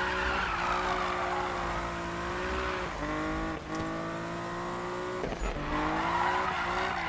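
Tyres screech in a long drift.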